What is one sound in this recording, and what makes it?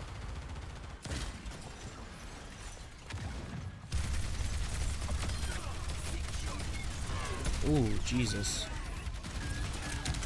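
Rapid gunfire blasts and crackles throughout.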